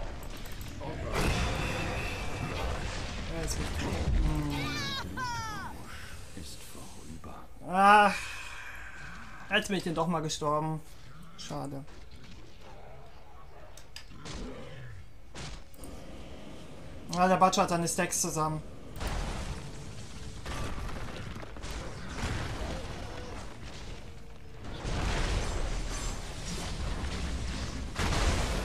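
Game combat effects crash and crackle.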